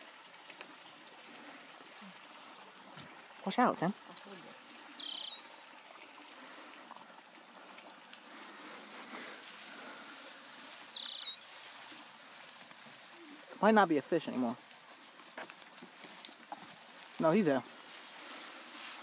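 Dry grass rustles as a hand brushes through it.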